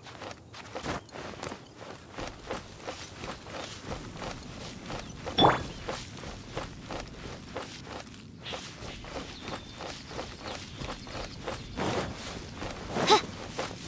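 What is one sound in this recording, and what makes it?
Footsteps patter quickly through grass as a game character runs.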